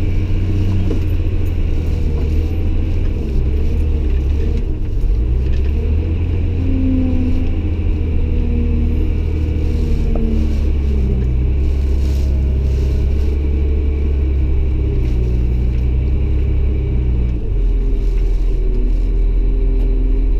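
A heavy diesel engine rumbles steadily from inside a loader cab, rising and falling in pitch.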